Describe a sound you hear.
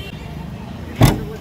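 A car boot lid slams shut with a heavy thud.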